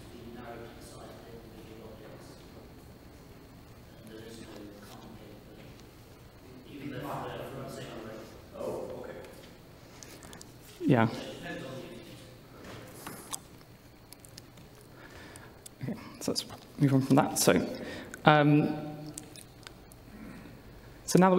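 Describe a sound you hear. A man speaks into a microphone in a large hall, calmly explaining.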